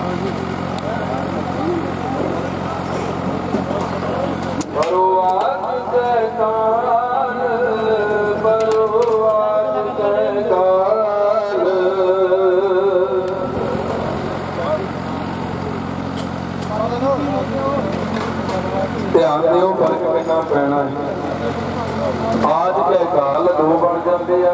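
Several men talk at once in a crowd, close by.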